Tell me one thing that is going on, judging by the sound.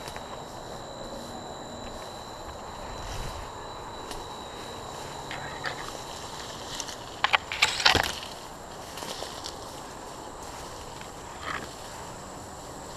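Dry grass and leaves rustle and crunch as someone pushes through dense brush.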